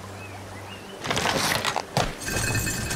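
A rope creaks as it is pulled tight around a wooden beam.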